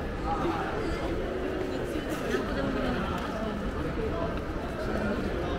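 A crowd of people chatters nearby in a busy, echoing walkway.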